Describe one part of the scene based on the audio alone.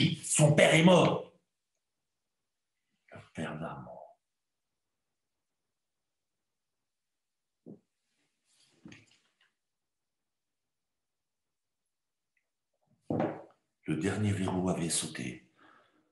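A middle-aged man speaks calmly over an online call, in short bursts with long pauses.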